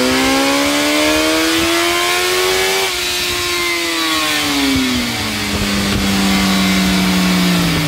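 An engine revs up loudly, then drops back and idles with a steady drone.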